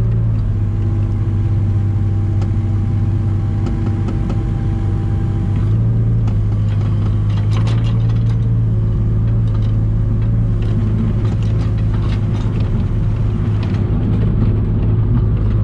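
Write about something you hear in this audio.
A diesel excavator engine hums steadily up close.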